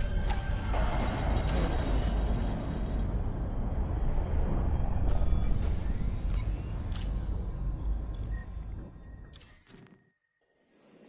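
A deep, roaring rumble fills the air, then fades away.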